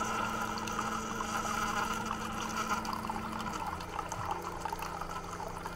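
A coffee machine hums steadily.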